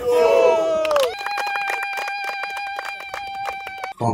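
A group of men clap their hands in rhythm.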